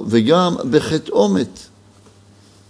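A middle-aged man reads out calmly, close to a microphone.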